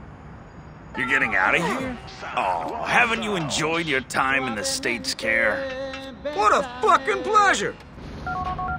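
A man taunts loudly and with animation.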